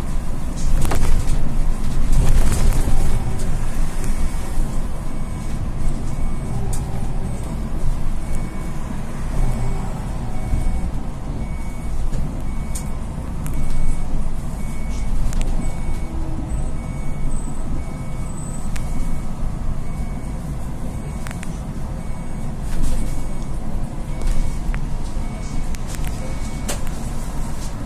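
A bus engine rumbles steadily from inside.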